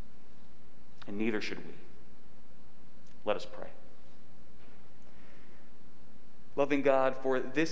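A man speaks calmly through a microphone in a softly echoing room.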